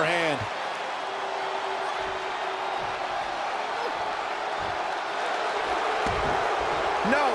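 A large crowd cheers in an arena.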